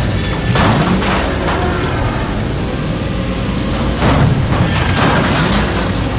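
Metal crunches as cars crash into each other.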